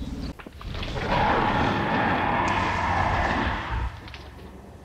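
A large dinosaur lets out a long, deep bellow.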